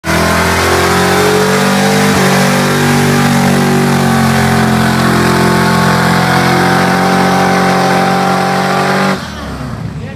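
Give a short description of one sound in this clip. A car engine roars loudly at high revs.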